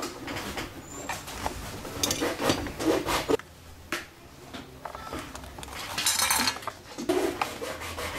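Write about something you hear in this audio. A metal tool scrapes and taps inside a hollow wooden instrument body.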